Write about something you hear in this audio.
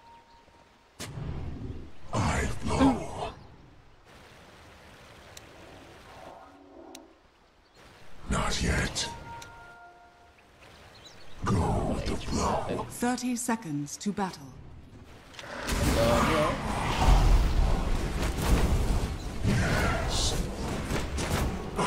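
A young man talks with animation into a close microphone, in bursts.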